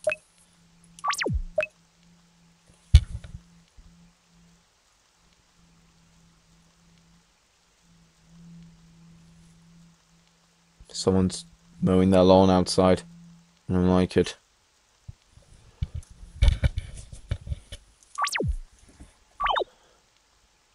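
Short electronic game menu chimes sound now and then.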